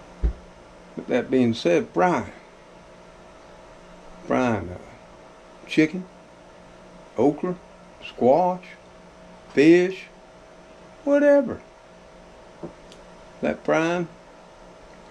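An elderly man talks close up, in short phrases with pauses.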